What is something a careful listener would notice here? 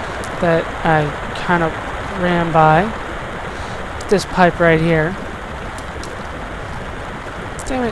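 Water splashes steadily as a swimmer paddles through it.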